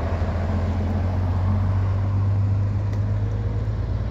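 A car drives past close by with tyres hissing on the road.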